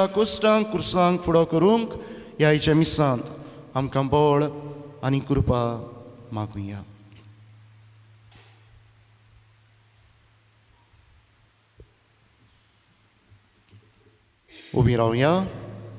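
An elderly man speaks slowly and solemnly through a microphone in a reverberant hall.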